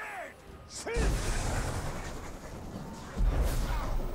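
A fiery explosion booms with a deep roar.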